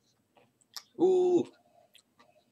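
A young man lets out a short, strained cry close to the microphone.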